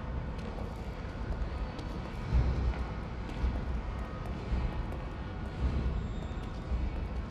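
Heavy footsteps splash slowly through shallow water.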